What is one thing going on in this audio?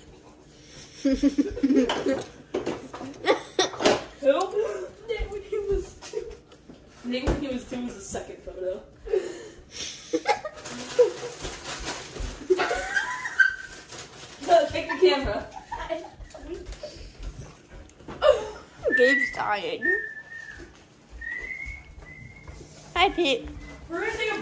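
Young children talk and laugh excitedly nearby.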